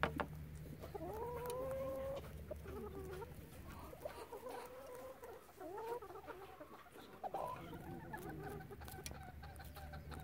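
Hens cluck and croon softly close by.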